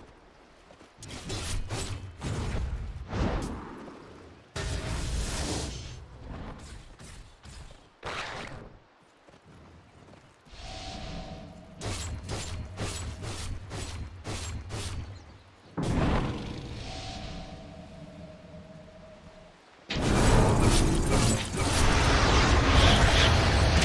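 Magic spells crackle and burst in quick bursts.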